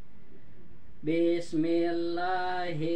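A young child chants a recitation in a sing-song voice close by.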